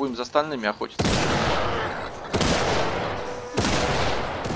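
Rapid gunshots fire at close range.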